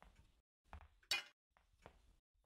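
A metal tool clanks as it is picked up.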